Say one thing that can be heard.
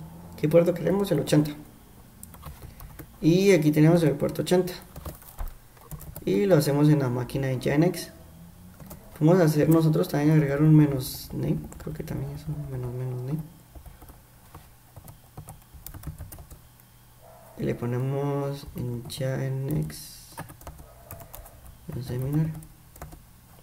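Keyboard keys click as someone types.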